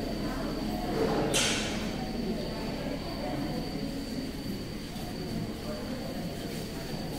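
A crowd of men murmurs and chatters all around.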